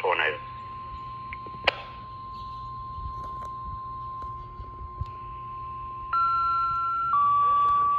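A two-way radio plays a steady, high electronic tone through its small loudspeaker.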